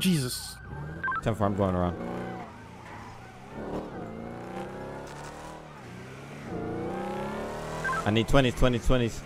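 A car engine revs and rises in pitch as it speeds up.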